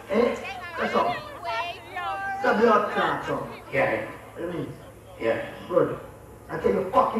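A young man raps energetically into a microphone over loudspeakers.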